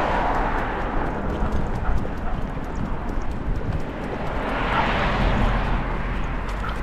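A dog's collar tags jingle softly as it walks.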